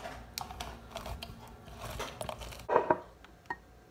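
A juicer squeaks as a lemon is twisted on it.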